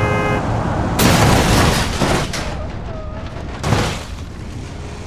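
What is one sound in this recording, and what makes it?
A car smashes into a tree with a heavy crunch.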